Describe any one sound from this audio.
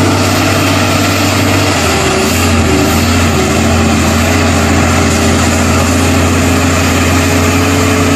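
A heavy truck's diesel engine rumbles loudly.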